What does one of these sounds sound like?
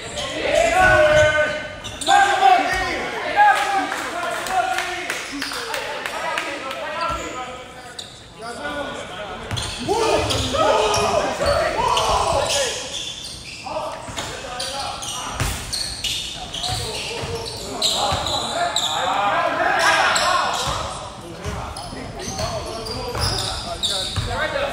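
Several young men shout and call out across an echoing gym.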